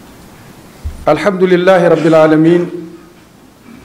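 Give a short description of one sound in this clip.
An elderly man reads out briefly through a microphone.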